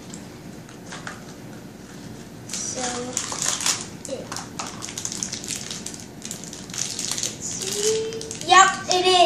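Small plastic pieces click and rattle in a boy's hands.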